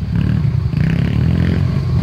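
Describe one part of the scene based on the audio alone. Another dirt bike engine whines in the distance.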